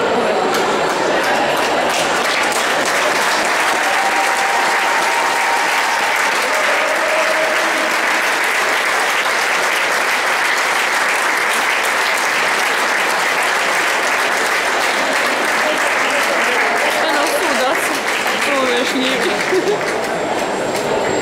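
A large crowd applauds and cheers in an echoing hall.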